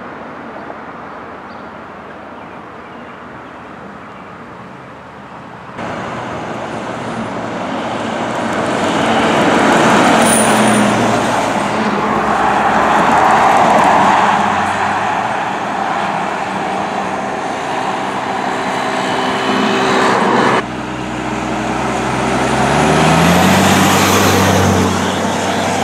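Emergency sirens wail loudly outdoors.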